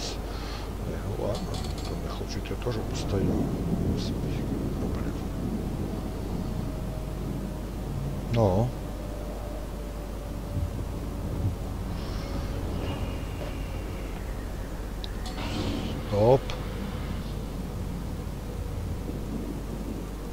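A large ship's engine rumbles low and steadily.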